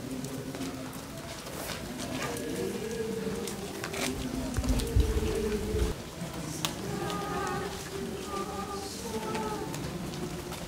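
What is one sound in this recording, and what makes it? A crowd of men and women sings slowly together outdoors.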